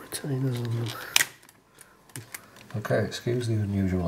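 A plastic circuit board clicks and rattles as it is handled.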